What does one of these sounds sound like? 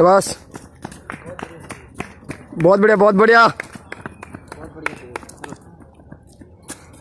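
Footsteps run quickly on pavement close by.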